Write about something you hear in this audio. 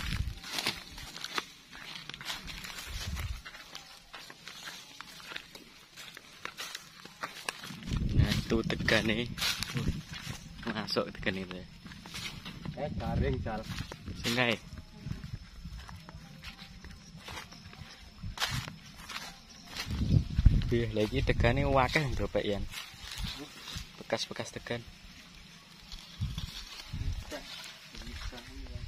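Wind rustles coconut palm fronds outdoors.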